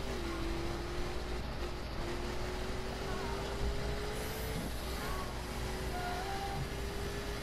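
Tyres hiss on asphalt.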